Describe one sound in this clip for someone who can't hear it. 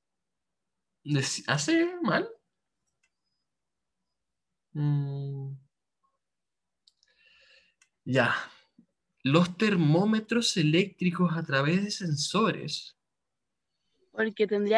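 A young man speaks calmly and close to a microphone, with pauses.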